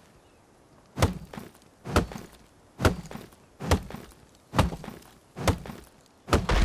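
An axe chops into a tree trunk with heavy thuds.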